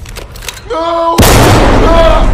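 A gunshot rings out loudly.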